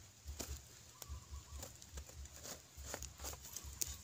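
Fingers scrape and crumble dry soil.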